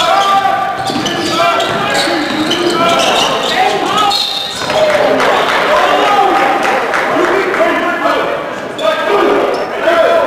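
A ball bounces on a wooden court.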